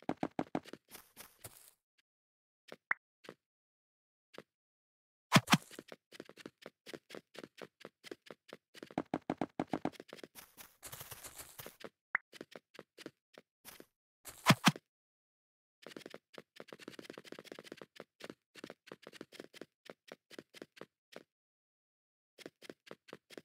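Quick footsteps patter across hard blocks.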